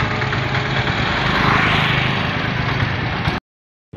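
An auto-rickshaw engine putters past.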